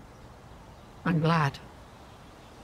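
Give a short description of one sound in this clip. An elderly woman speaks softly.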